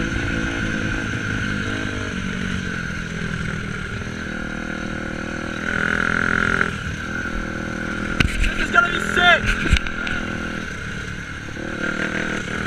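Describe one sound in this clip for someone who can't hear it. A dirt bike engine drones and revs up close.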